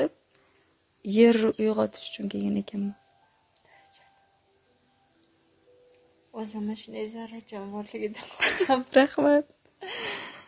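A second young woman talks with animation.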